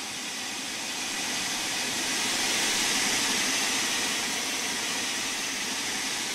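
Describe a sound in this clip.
A steam locomotive hisses steam nearby.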